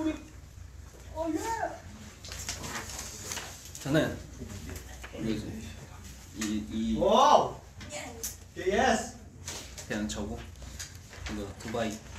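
Young men talk and laugh with animation close by.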